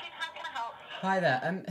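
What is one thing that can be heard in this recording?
A young man speaks close by, over a phone's speaker.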